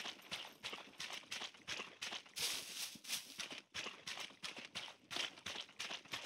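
Footsteps run quickly over soft dirt and rustling plants.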